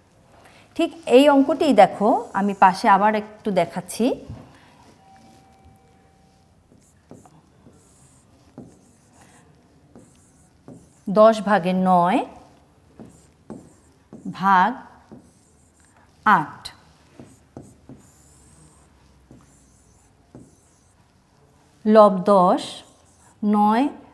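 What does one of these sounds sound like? A woman speaks calmly and clearly, as if explaining a lesson, close to a microphone.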